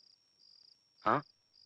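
A man speaks with surprise, close by.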